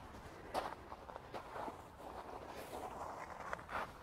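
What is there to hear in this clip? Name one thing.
A digging fork scrapes and crunches through soil.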